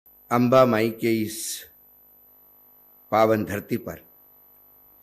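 A middle-aged man speaks firmly into a microphone, his voice carried over loudspeakers.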